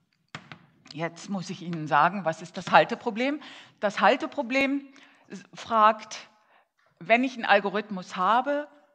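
A woman speaks clearly to a room, in a slightly echoing hall.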